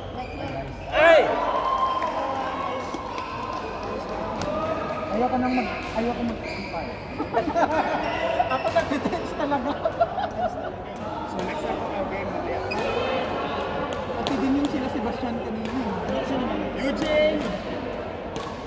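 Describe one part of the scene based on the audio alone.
Men talk and call out to each other across the hall.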